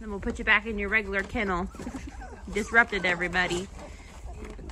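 Young puppies whine and squeal up close.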